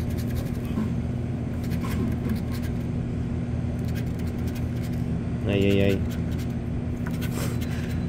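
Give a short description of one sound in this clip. A tool scrapes across a stiff card.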